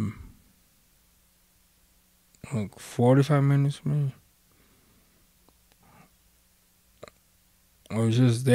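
A vinyl record plays a voice through a speaker, in short bursts.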